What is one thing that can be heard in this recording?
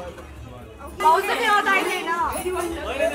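Several men and women talk over one another close by.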